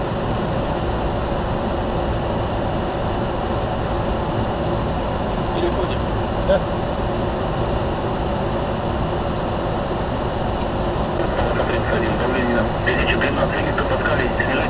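Aircraft engines drone with a steady, deep roar.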